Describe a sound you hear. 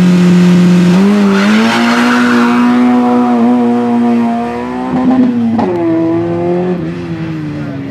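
A car engine accelerates away, climbing through gear changes.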